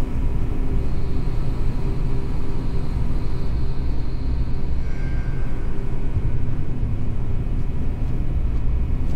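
A low machine hum drones steadily throughout.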